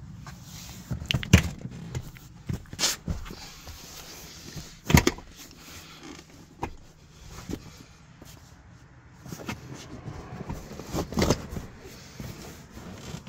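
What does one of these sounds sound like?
A hand rubs and squeaks against leather upholstery.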